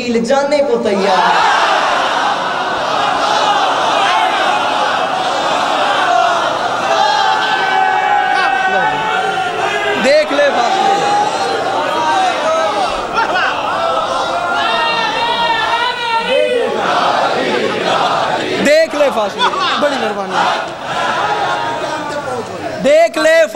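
A crowd of men cheers and chants loudly.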